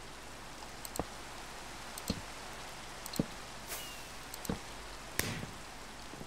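Blocks are placed with soft clicking thuds.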